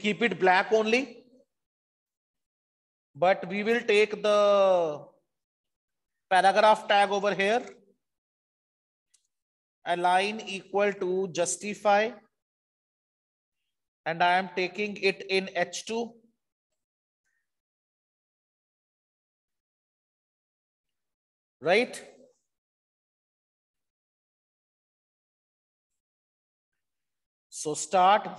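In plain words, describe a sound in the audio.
A man speaks calmly in short bursts with pauses, heard through an online call.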